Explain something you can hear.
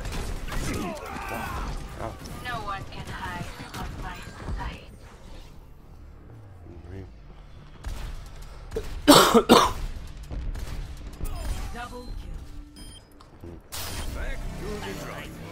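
Gunfire and explosions boom from a video game.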